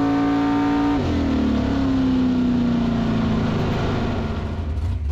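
A race car engine winds down as the car slows.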